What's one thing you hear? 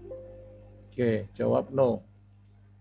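A young man speaks a few words calmly, close to a microphone.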